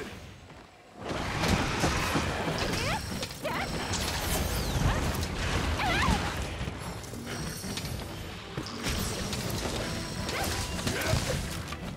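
Game sound effects of slashing blades and heavy impacts ring out during a fight.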